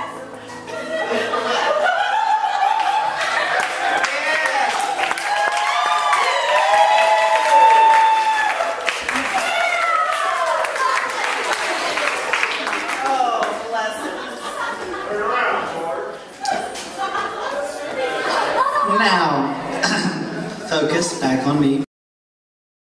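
Young men and women sing on stage, heard from the audience in a large hall.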